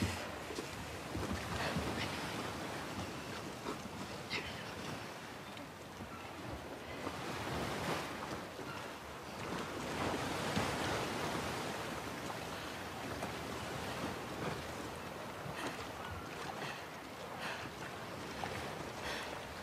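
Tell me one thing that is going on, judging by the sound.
Water splashes as a woman wades through the sea.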